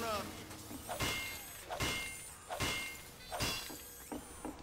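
A wrench clangs repeatedly against metal.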